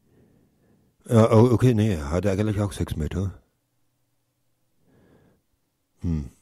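A man speaks with animation into a close microphone.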